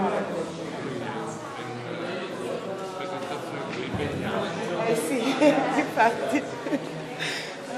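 An elderly man talks close by.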